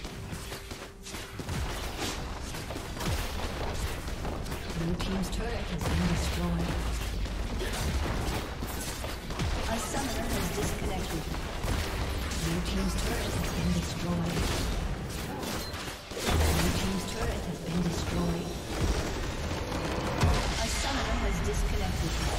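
Video game spell effects whoosh and crackle in a busy battle.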